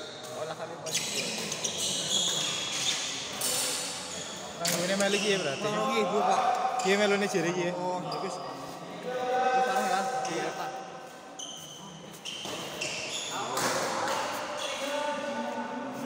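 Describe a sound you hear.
A crowd of young people chatter in the background.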